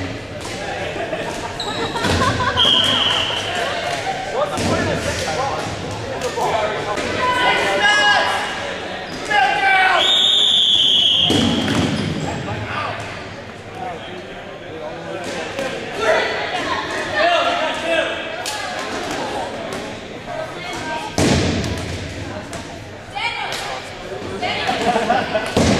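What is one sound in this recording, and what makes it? A crowd of players shouts and cheers in a large echoing gym.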